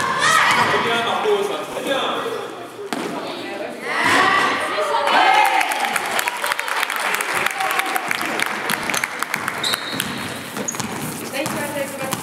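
Young women shout and cheer in an echoing gym.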